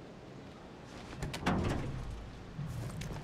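Heavy metal doors creak and bang open.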